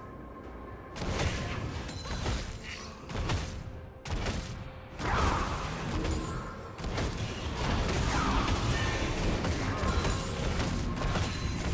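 Video game weapons clash with sharp hits.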